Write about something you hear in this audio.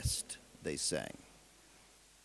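A man speaks briefly, heard through an old, hissy soundtrack.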